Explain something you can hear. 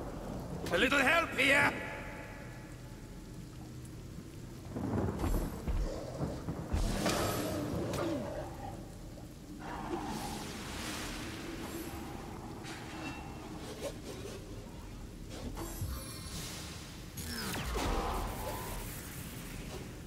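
Magic spells crackle and burst in bursts of combat.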